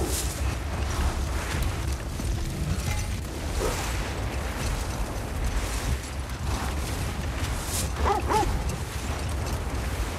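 A sled scrapes and hisses over snow.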